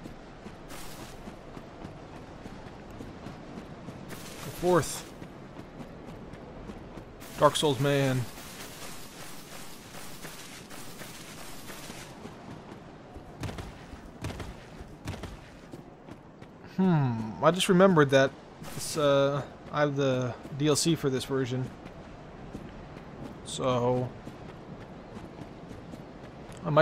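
An armoured figure's footsteps thud softly on grass.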